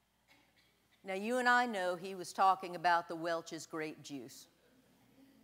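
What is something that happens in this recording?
A middle-aged woman speaks calmly through a microphone in a large echoing room.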